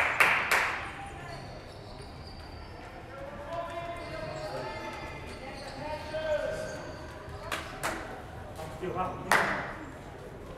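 A ping pong ball clicks sharply in an echoing hall.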